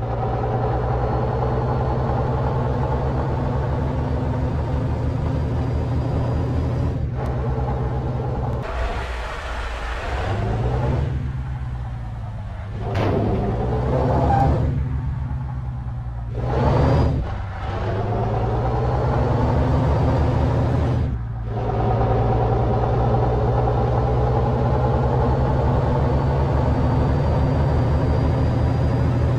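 A bus engine hums and drones steadily, rising and falling as it drives.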